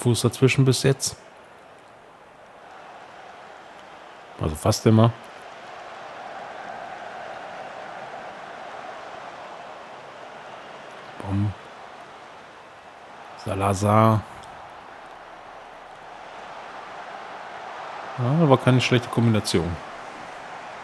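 A stadium crowd murmurs and cheers steadily in the distance.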